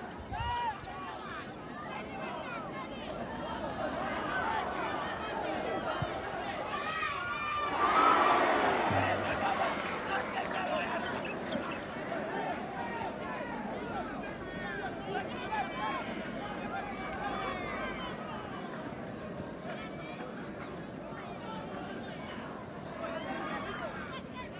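Many voices of a small crowd chatter and call out outdoors.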